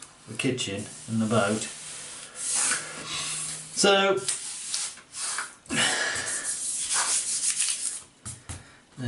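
Paper rustles and slides across a table.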